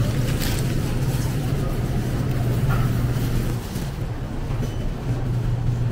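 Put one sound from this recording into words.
A shopping cart rattles as it rolls over a tiled floor.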